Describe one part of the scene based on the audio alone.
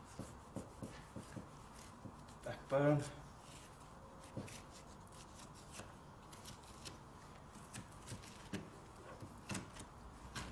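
A knife slices through raw meat with soft, wet scraping sounds.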